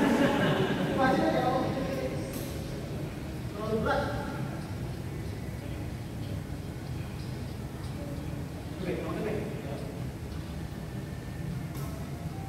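Badminton rackets strike a shuttlecock with sharp taps.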